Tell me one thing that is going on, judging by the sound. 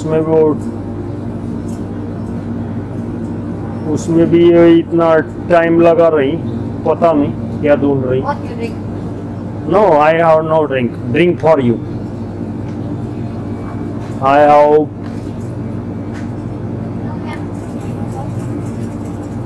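A steady low hum runs throughout.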